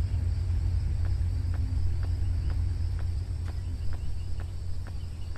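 Footsteps fall steadily on pavement.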